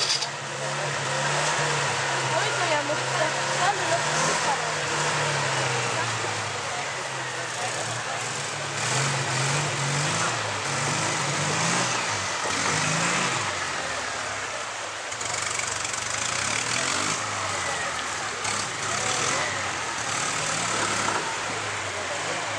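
A flat-twin off-road buggy engine revs under load.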